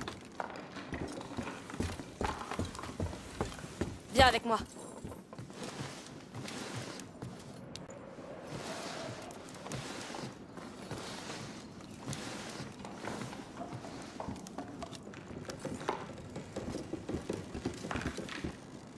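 Footsteps scuff and tap on stone and wooden boards.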